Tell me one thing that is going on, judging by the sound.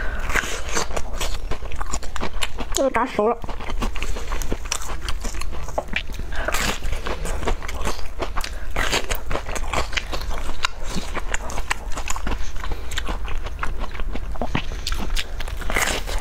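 Crisp wafer crunches loudly close to a microphone as a young woman bites and chews.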